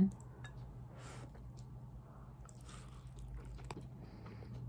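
A woman slurps noodles with wet smacking sounds.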